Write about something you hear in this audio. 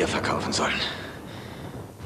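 A man groans with strain nearby.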